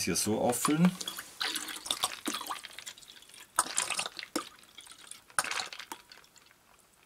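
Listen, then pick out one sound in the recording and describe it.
A spoon clinks against a glass while stirring.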